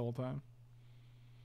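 A man speaks briefly and calmly into a close microphone.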